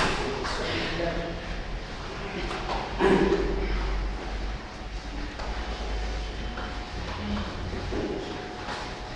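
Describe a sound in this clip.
Two men grapple and shift their bodies on a padded mat.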